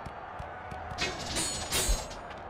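Blades whoosh and clash in a game.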